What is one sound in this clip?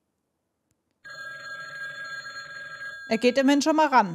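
A telephone rings.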